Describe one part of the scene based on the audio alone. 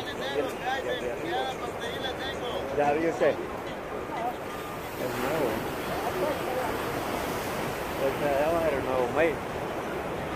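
A man talks close by, casually.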